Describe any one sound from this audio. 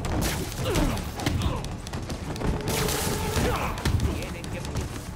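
Punches and blows thud during a fight.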